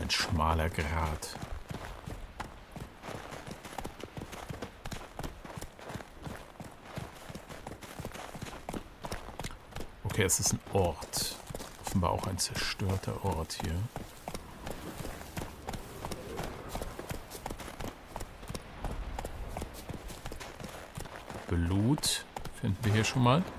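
A horse's hooves thud steadily along a rocky, snowy path.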